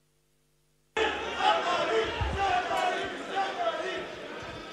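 Several men talk over one another in a large echoing hall.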